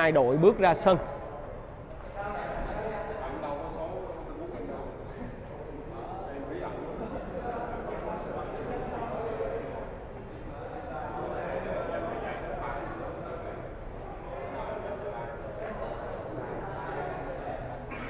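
A crowd of young men and children chatter quietly nearby.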